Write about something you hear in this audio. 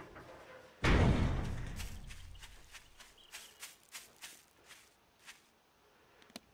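Footsteps crunch steadily on grass.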